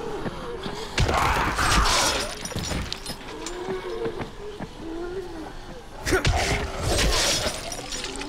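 A zombie growls and snarls up close.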